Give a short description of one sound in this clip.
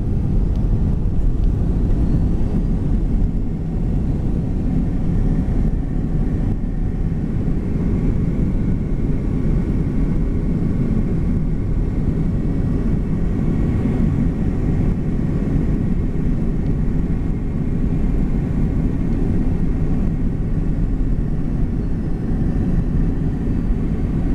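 A jet engine roars steadily close by, heard from inside a cabin.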